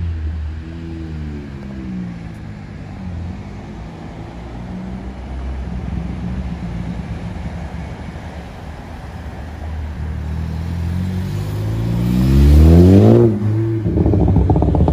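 A car engine rumbles deeply and revs higher as the car drives close past.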